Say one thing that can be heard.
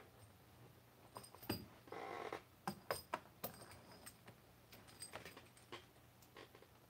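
A cable connector clicks and rattles as it is handled.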